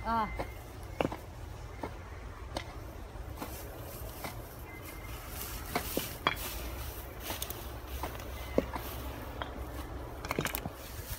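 A hoe chops and scrapes at grass.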